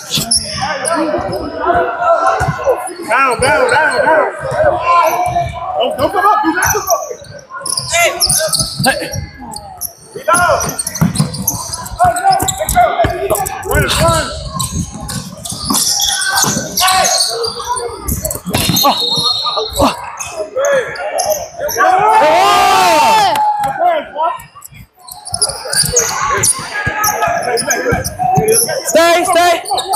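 Spectators chatter and call out in a large echoing hall.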